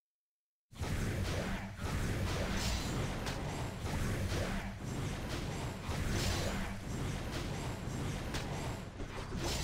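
Game combat sounds of sword slashes and magic blasts hit in quick succession.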